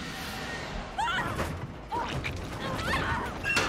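A young woman exclaims with animation close to a microphone.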